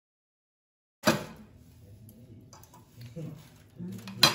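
Aluminium foil crinkles under hands.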